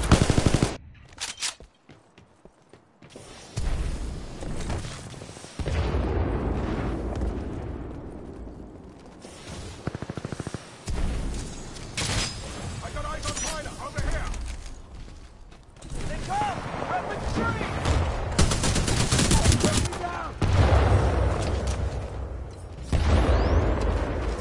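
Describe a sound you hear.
Rifle shots crack in sharp bursts.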